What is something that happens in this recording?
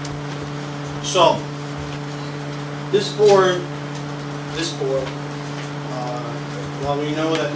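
A man speaks into a microphone, heard through a loudspeaker in a room.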